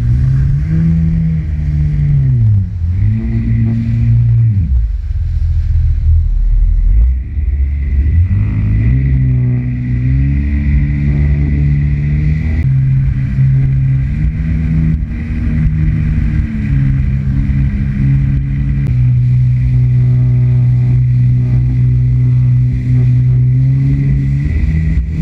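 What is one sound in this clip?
A jet ski engine drones loudly, its pitch rising and falling with the throttle.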